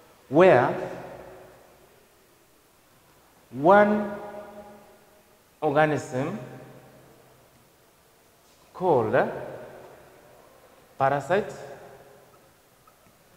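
A man speaks in short, drawn-out phrases with pauses, in an echoing room.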